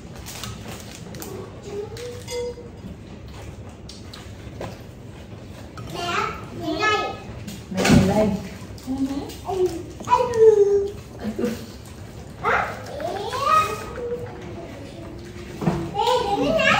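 Women talk and laugh nearby with animation.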